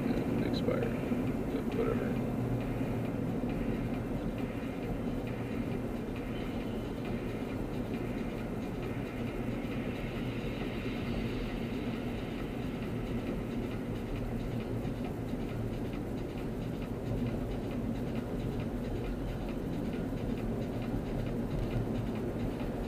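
A car engine hums steadily inside a moving car.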